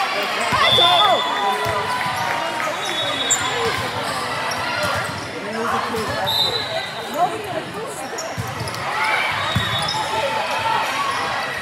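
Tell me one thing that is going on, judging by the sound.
A volleyball thumps off a player's arms.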